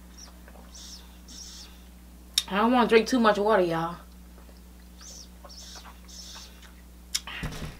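A woman sips and gulps from a plastic water bottle.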